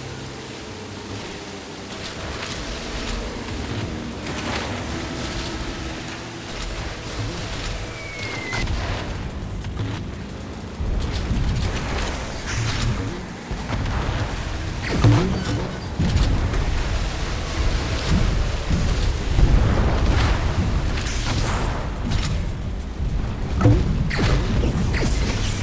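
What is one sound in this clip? A boat engine hums steadily while racing over water.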